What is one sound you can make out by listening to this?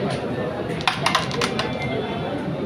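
Wooden carrom pieces click and rattle against each other and the board's edges.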